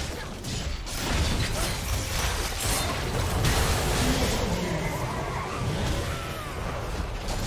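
Magic blasts and weapon strikes crackle and burst in a fast game battle.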